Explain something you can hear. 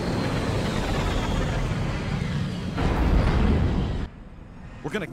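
A deep roar of engines fills the air.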